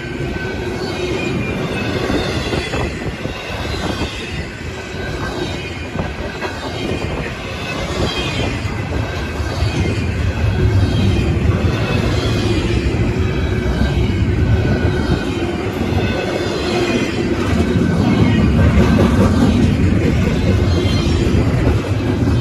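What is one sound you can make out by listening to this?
A long freight train rumbles past close by, wheels clattering on the rails.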